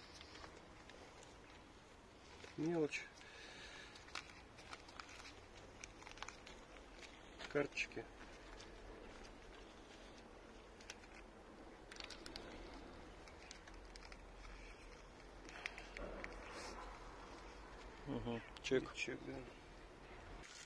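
A leather wallet rustles and clicks as gloved hands open it and flip through cards.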